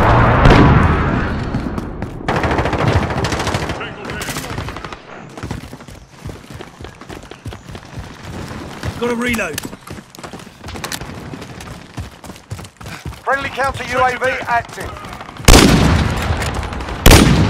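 Gunshots fire in loud, quick bursts.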